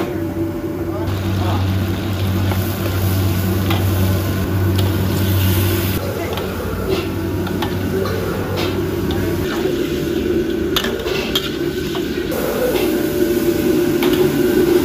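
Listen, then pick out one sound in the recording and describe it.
Hot oil sizzles in a wok.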